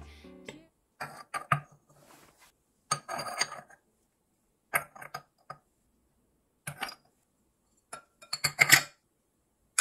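Ceramic teaware clinks and knocks as wooden tongs set cups and lids into a bowl.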